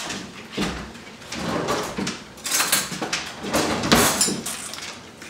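Cutlery clinks and rattles in a drawer.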